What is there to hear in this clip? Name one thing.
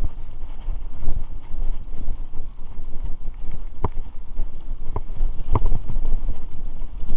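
Bicycle tyres roll over a bumpy dirt trail.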